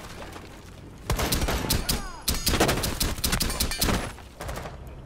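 Rapid gunshots ring out in bursts.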